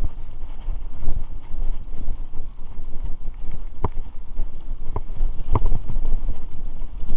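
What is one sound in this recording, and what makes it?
Wind rumbles loudly across a microphone.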